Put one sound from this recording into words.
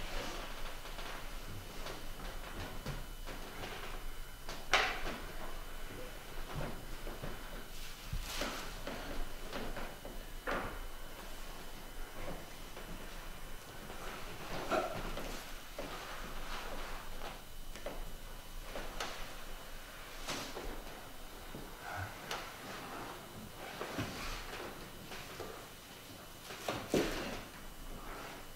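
A man speaks with feeling, heard from a distance in a large room.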